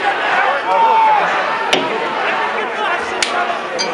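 A large crowd shouts outdoors.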